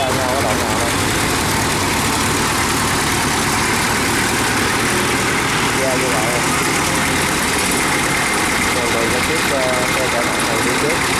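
Metal crawler tracks clank and rattle over the ground.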